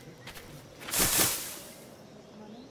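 Hay rustles as a body lands in it.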